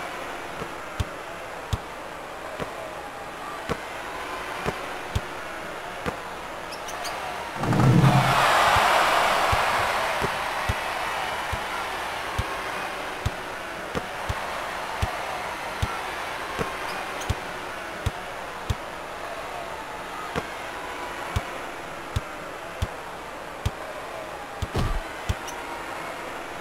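A basketball bounces steadily on a hardwood floor.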